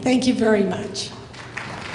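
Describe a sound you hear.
A woman speaks into a microphone in a large hall.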